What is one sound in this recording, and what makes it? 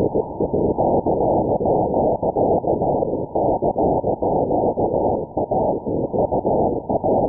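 A radio receiver hisses with muffled static.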